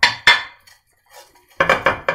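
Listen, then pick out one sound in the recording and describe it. A pastry brush taps and swishes against a glass dish.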